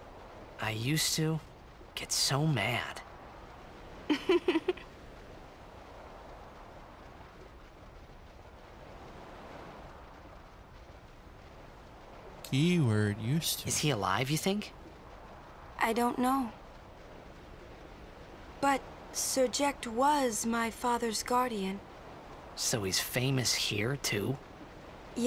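A young man speaks quietly and wistfully, close up.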